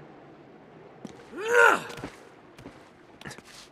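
Hands slap and scrape against stone ledges.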